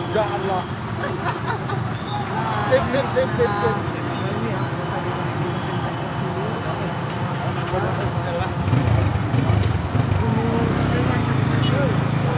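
A second man laughs and answers.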